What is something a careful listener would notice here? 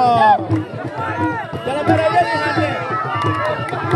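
A crowd of women sings and cheers loudly outdoors.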